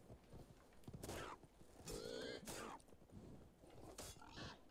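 A sword strikes a beast with sharp thuds.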